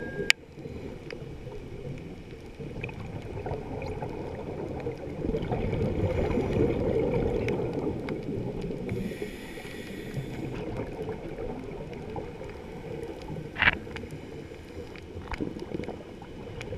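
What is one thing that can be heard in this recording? Water rumbles and swishes in a low, muffled way, as heard underwater.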